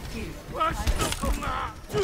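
Game gunfire rattles in quick bursts.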